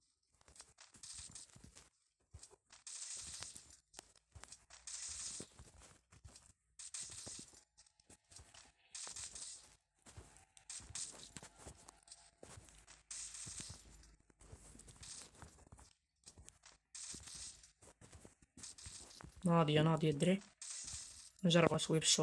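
Gunshots fire in short, repeated bursts.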